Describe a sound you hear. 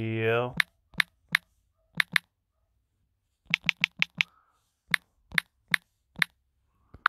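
Phone keyboard keys click in quick taps.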